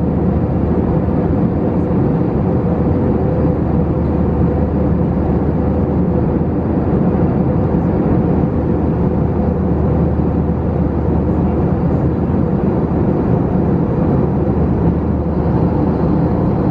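A jet engine roars steadily with a low, even rumble.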